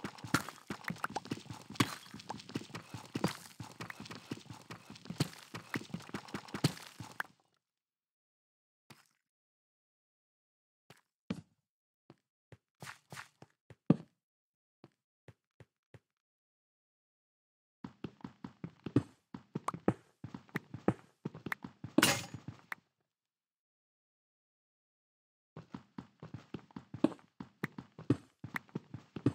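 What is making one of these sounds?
A pickaxe chips rapidly at stone blocks.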